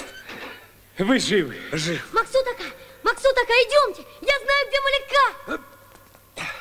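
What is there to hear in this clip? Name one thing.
A man shouts.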